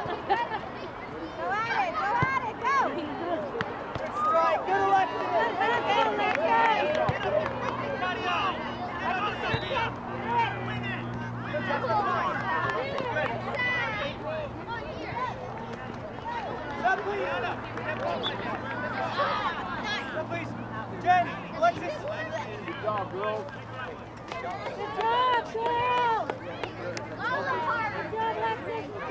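Men and women shout and cheer from the sideline outdoors.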